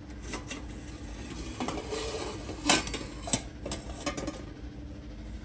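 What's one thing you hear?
Metal pots clank against each other on a rack.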